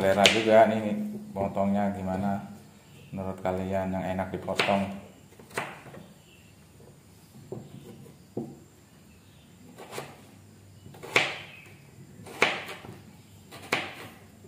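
A knife cuts through a potato.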